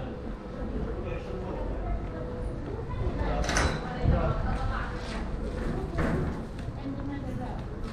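Footsteps tap on stone paving outdoors.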